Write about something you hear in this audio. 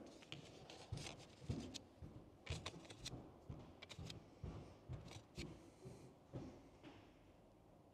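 Small metal washers click and clink as they are picked up.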